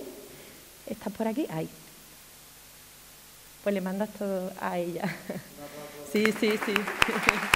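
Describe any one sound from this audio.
A young woman speaks calmly into a microphone in an echoing hall.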